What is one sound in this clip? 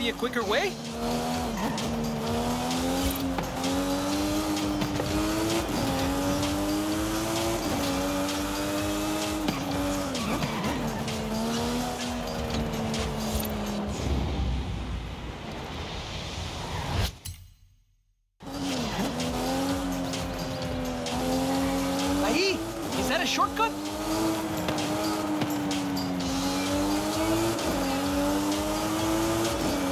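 A sports car engine roars and revs up and down as it shifts gears.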